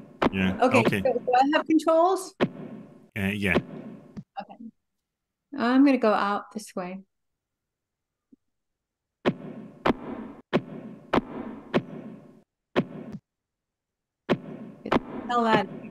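A woman talks with animation through a microphone.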